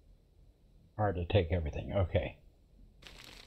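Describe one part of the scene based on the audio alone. A man speaks briefly with animation, close to a microphone.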